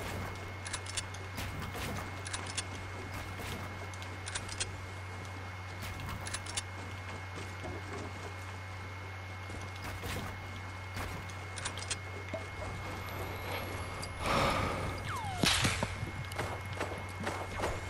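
Wooden walls and ramps snap into place with quick, sharp clacks.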